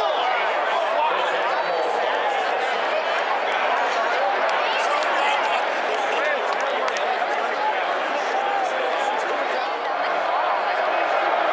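Many voices shout and whistle from the stands nearby.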